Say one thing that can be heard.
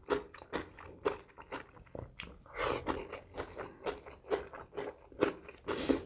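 Crisp vegetables crunch between a man's teeth.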